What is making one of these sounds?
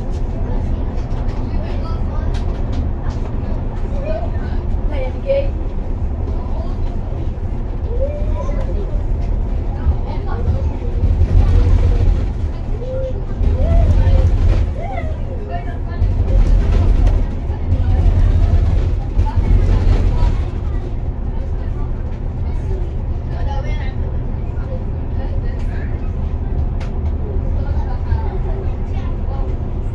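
A vehicle's engine hums steadily as it drives along a highway.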